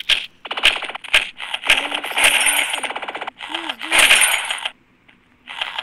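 A laser gun fires in quick bursts.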